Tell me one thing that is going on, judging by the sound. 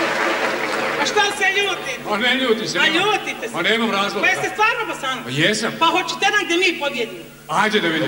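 A man speaks loudly with animation on stage.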